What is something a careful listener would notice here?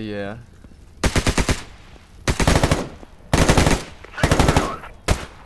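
A rifle fires loud rapid bursts close by.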